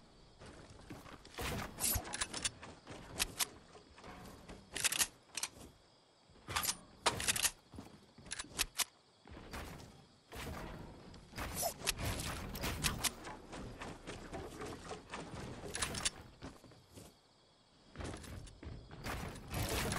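Wooden panels snap into place in quick bursts of sharp clacks.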